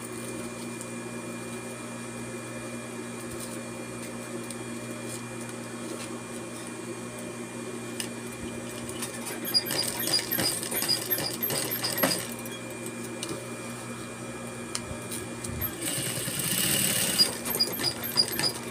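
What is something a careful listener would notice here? A sewing machine motor hums steadily.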